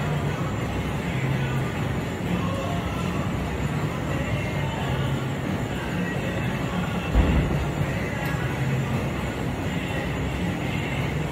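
A treadmill belt hums and rumbles steadily.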